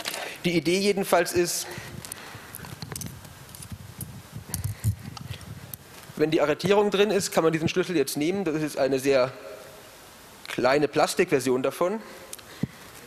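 A young man speaks calmly into a microphone in a large echoing hall.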